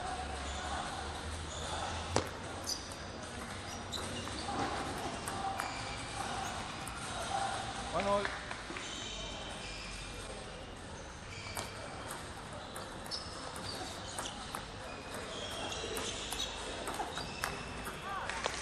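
A table tennis ball clicks sharply against paddles and the table in a quick rally.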